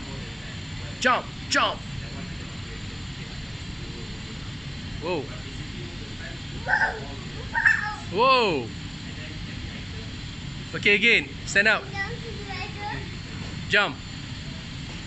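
A young child squeals and babbles with excitement close by.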